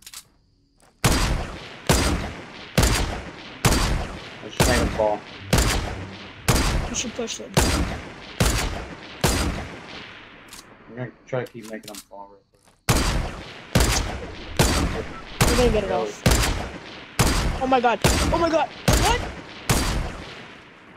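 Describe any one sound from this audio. Rifle shots fire one after another in a steady rhythm, each echoing briefly.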